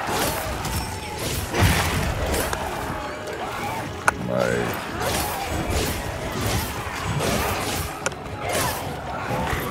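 Blades clang and slash against a monster's hide.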